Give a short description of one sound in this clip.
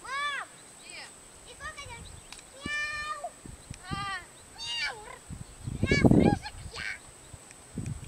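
Young children shout and call out in high voices at a distance outdoors.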